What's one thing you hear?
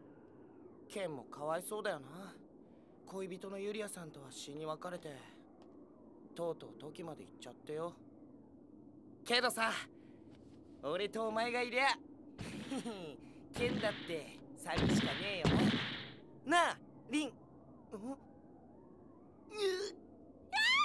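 A young man speaks with strong emotion, close by.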